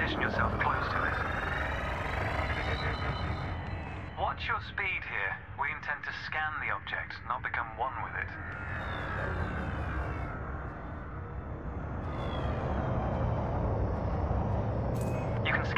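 A spaceship engine hums with a steady low rumble.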